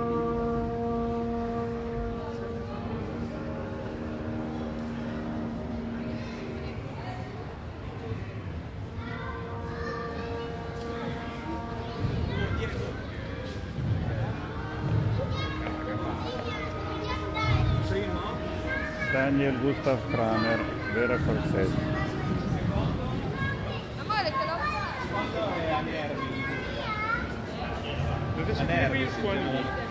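A loudspeaker plays sustained electronic tones that echo through a large hall.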